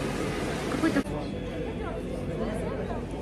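People chatter outdoors in the background.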